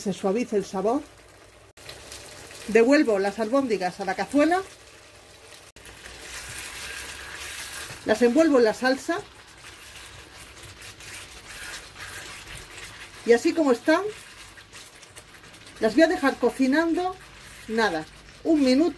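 Thick sauce bubbles and sizzles gently in a pan.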